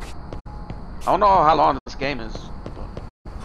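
A man speaks briefly and loudly into a microphone.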